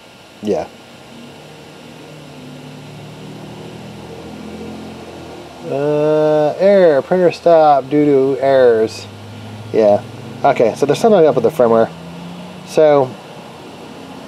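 A 3D printer's stepper motors whine and buzz in changing tones as the print head moves.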